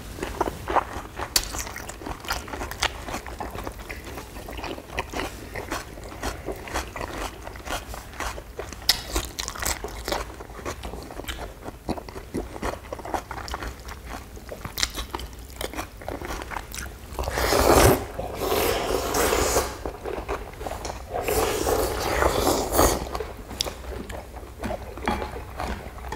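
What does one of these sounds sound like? People chew food noisily, close by.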